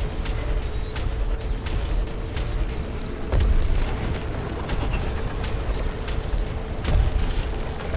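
A game vehicle's engine roars steadily at speed.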